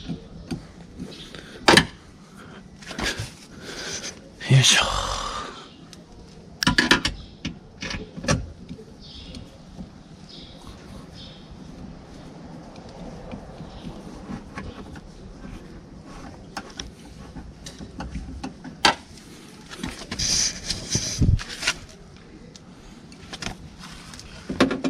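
A metal tool clicks and knocks against a car door.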